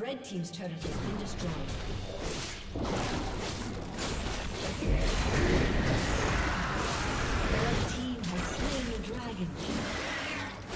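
Magic blasts and weapon clashes crash in a busy fight.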